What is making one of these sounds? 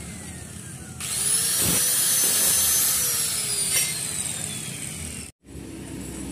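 An angle grinder whines loudly, then winds down.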